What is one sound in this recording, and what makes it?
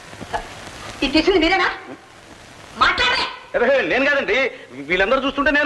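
A woman speaks loudly and with animation nearby.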